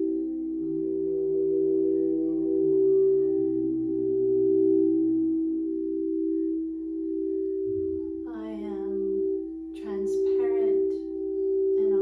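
Singing bowls ring with a steady, layered hum.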